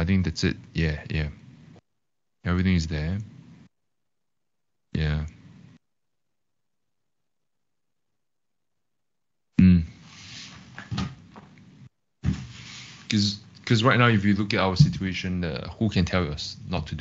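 A young man speaks calmly over an online call, in short phrases with pauses.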